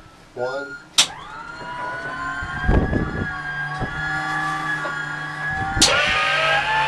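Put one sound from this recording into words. An aircraft starter motor whines and winds up.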